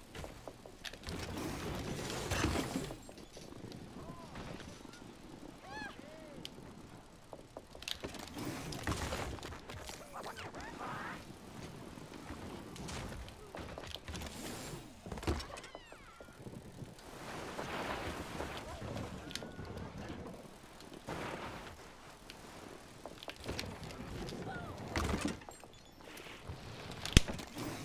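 Bicycle tyres roll and whir over a hard ramp.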